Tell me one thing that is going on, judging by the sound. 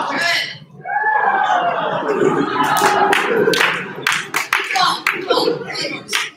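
A crowd cheers loudly in a large room.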